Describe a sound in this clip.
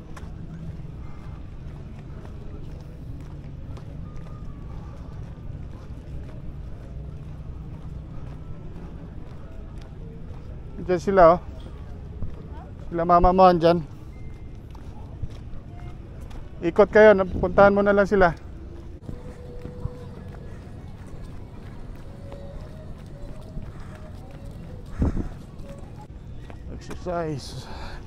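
Footsteps tap steadily on stone paving.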